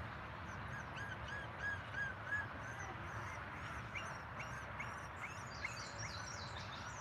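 Puppies whimper and yip softly nearby.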